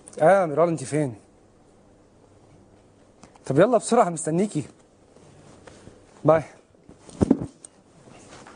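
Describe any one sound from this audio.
A young man talks on a phone, close by, with animation.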